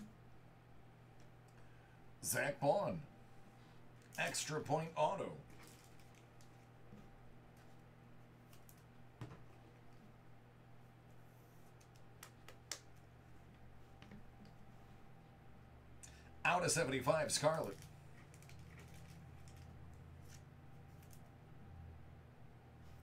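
Trading cards rustle and tap in a man's hands.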